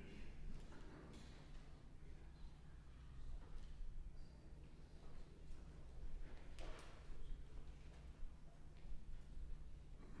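Footsteps tap along an aisle in a large echoing hall.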